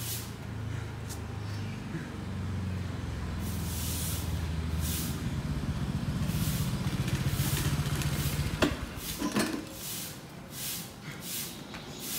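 A man breathes heavily as he exercises.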